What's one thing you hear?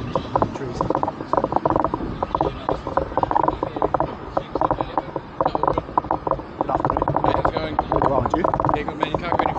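A woman talks calmly close to the microphone.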